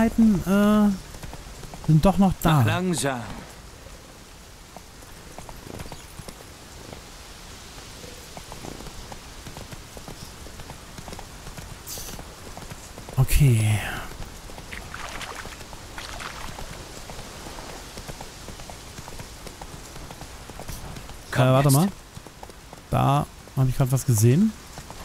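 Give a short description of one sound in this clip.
Horse hooves thud steadily on a dirt trail.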